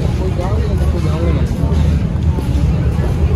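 People talk nearby in a busy street.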